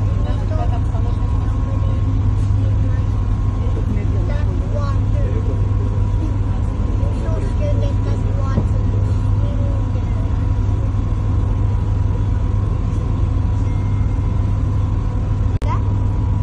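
A boat engine hums steadily and low.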